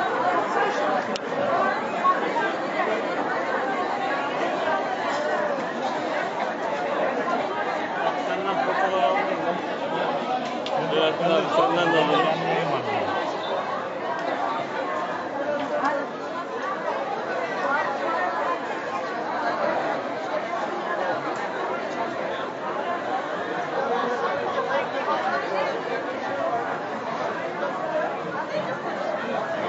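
A busy crowd of men and women chatters all around.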